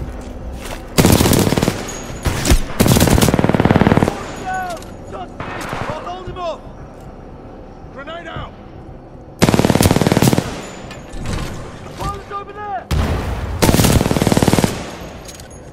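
Automatic gunfire rattles in loud, rapid bursts.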